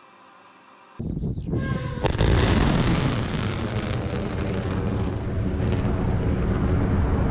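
A rocket launches with a sudden thunderous roar that rumbles on.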